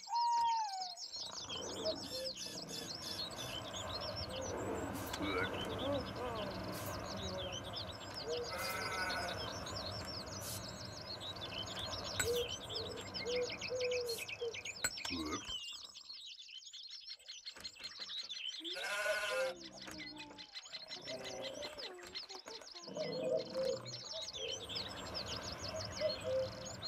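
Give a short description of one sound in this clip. Birds chirp and twitter outdoors.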